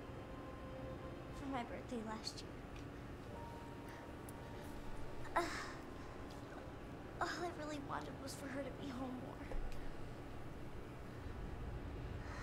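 A young girl speaks softly and sadly.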